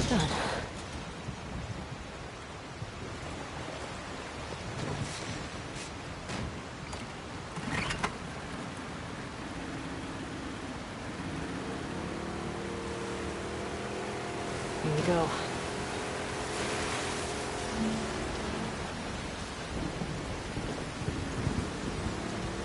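Water splashes and laps against a small boat.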